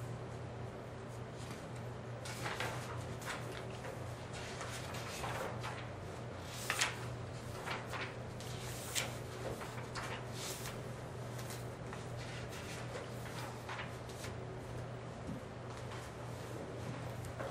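Paper rustles and taps as a man handles sheets on a desk.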